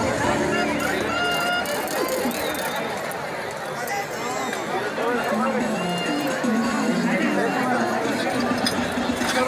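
Men and women nearby talk loudly over the crowd.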